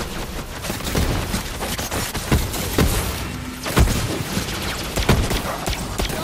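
Energy blasts crackle and explode.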